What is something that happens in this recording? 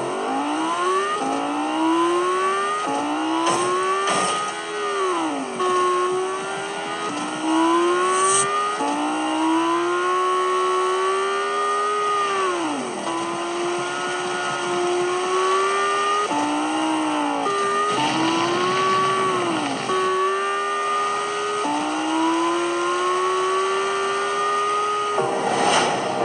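A game car's engine revs high and shifts gears again and again.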